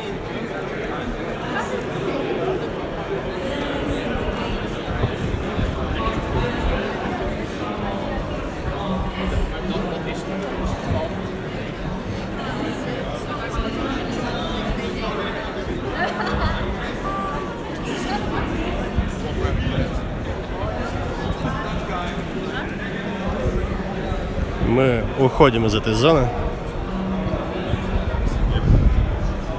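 A crowd of people chatters all around in a large echoing hall.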